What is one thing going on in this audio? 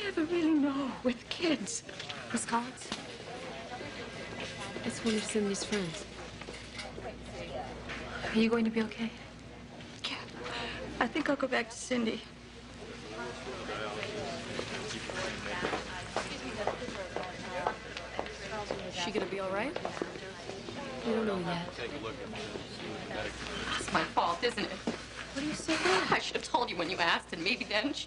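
Another woman speaks calmly in a low voice.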